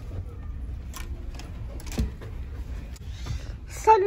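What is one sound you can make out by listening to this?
A door handle clicks open.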